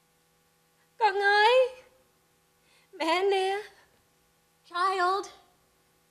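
A young woman cries out in high, wailing bursts into a microphone.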